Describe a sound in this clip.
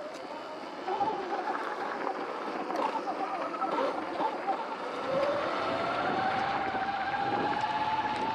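Electric dirt bike motors whine and rise in pitch as they speed up.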